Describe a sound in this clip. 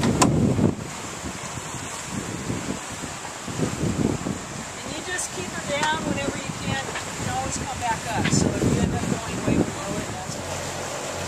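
Wind buffets outdoors on open water.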